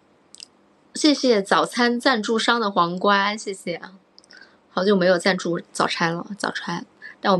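A young woman speaks close to a microphone, calmly and with animation.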